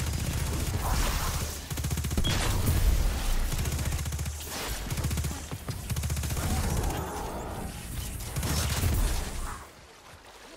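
Electric blasts crackle and boom.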